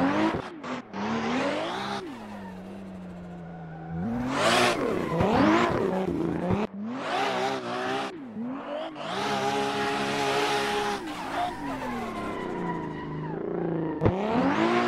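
A car engine revs hard and rises and falls in pitch as the car drifts.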